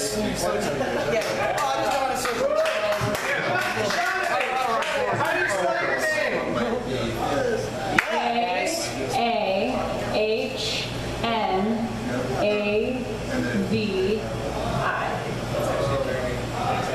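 A woman sings into a microphone through a loudspeaker.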